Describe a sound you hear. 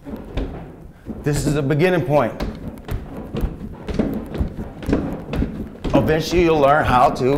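Feet tap on a plastic step.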